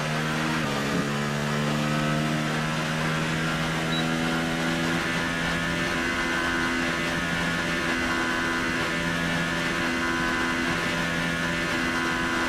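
A racing car engine holds a steady high whine at full speed.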